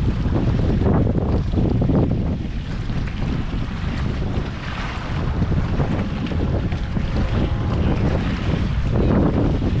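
Small waves lap against a kayak's hull.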